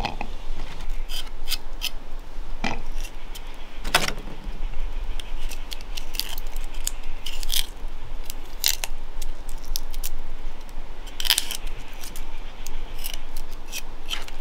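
A knife scrapes and peels the skin off small seeds.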